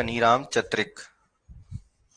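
A man speaks briefly into a microphone, close up.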